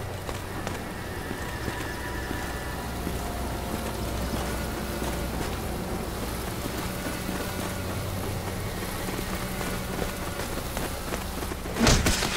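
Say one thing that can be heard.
Water gushes and splashes steadily.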